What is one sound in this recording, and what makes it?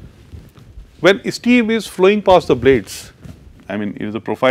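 A man speaks calmly into a microphone, as if lecturing.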